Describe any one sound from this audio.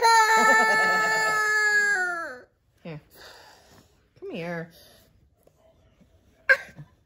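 A young boy cries and wails loudly close by.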